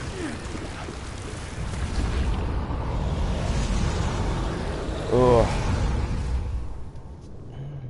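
A low rushing whoosh swells and then fades.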